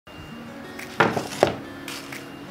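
A board slides and knocks on a workbench.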